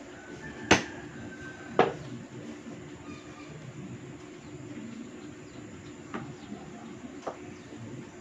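A knife taps and knocks against a wooden table.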